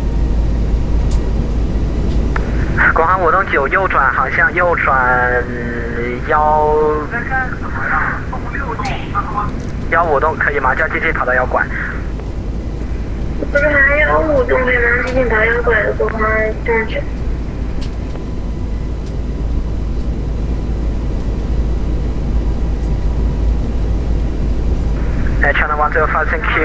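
An aircraft engine drones steadily at a low pitch.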